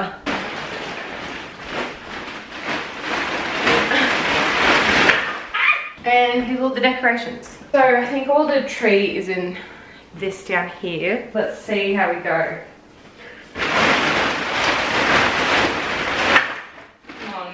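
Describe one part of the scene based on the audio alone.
A plastic bag rustles loudly as it is carried and dragged.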